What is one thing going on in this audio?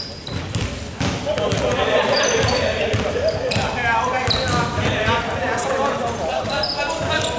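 Spectators nearby chatter.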